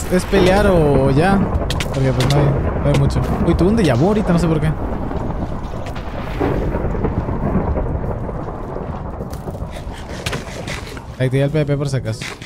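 Water splashes softly around a swimmer.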